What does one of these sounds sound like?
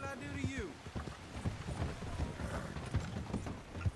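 Horse hooves thud on wooden planks.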